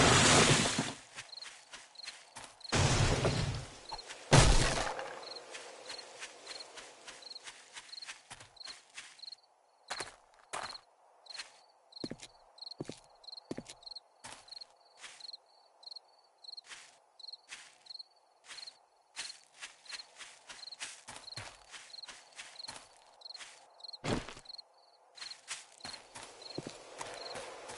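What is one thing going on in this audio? Footsteps crunch steadily through grass and leaves.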